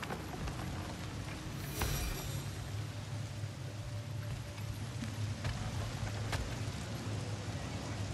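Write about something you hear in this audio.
Heavy footsteps thud on creaking wooden boards.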